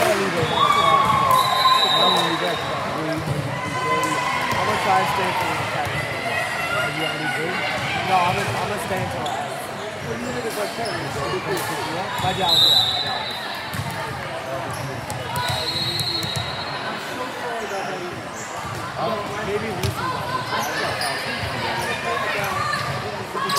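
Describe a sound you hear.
Girls' voices chatter and call out throughout a large echoing gym.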